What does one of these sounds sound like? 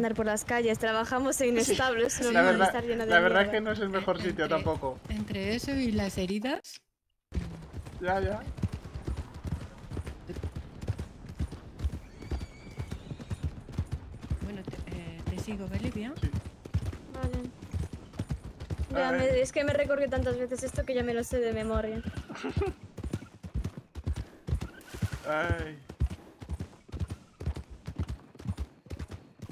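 Horse hooves clop steadily on a dirt track.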